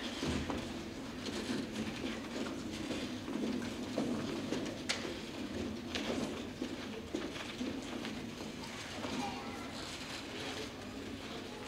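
Footsteps shuffle and thump on wooden risers as singers change places.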